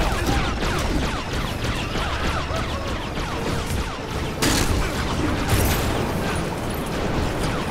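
Laser blasts zap repeatedly in quick succession.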